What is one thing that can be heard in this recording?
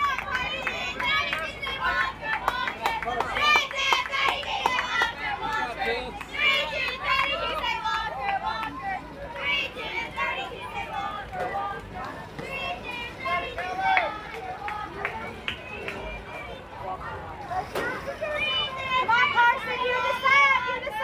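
Young girls chant and shout in the distance outdoors.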